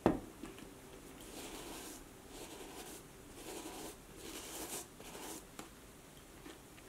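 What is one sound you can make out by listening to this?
A cloth rubs over a leather boot.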